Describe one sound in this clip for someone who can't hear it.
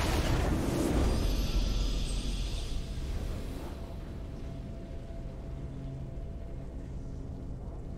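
A triumphant fanfare swells.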